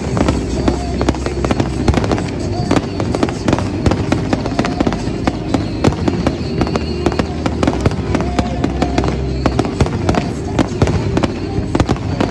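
Fireworks crackle and sizzle as sparks fall.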